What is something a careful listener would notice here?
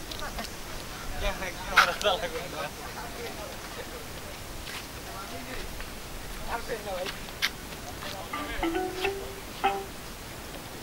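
Men nearby talk to each other outdoors.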